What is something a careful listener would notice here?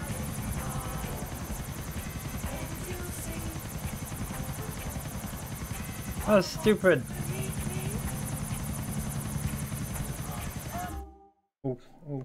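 A helicopter's rotor whirs and thumps steadily.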